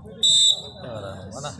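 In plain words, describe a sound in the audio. A referee blows a sharp, short whistle.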